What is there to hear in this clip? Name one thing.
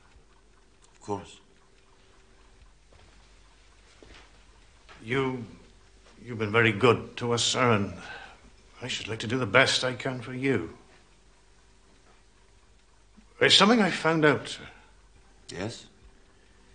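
Another man answers briefly and calmly.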